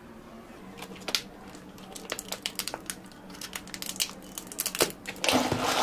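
A plastic lid snaps onto a cup.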